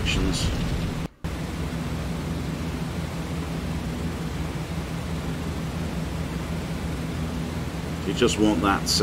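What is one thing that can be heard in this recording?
Aircraft engines drone steadily and low.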